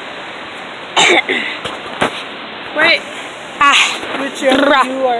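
A woman talks loudly and with animation close by, outdoors.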